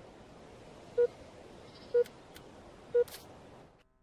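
Short electronic beeps sound once a second from a game.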